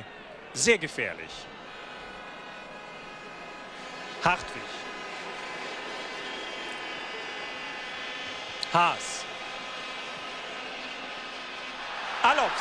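A large crowd murmurs and cheers across an open stadium.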